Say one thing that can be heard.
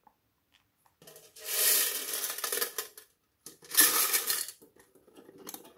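A plastic box rattles and scrapes as it is set down.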